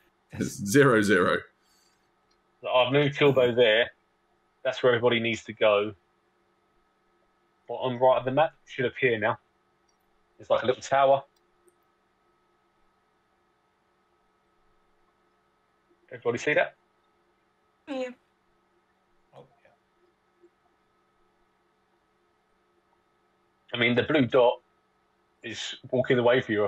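A man speaks over an online call in short bursts, with pauses between.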